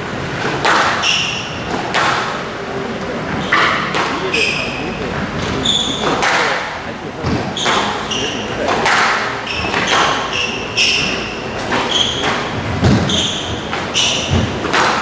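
Shoes squeak on a wooden court floor.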